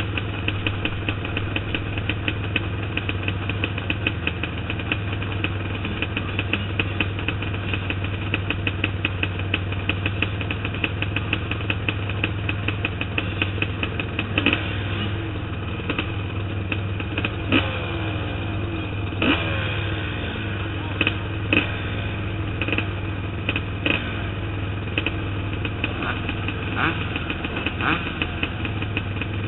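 A motorbike rattles and knocks over bumps.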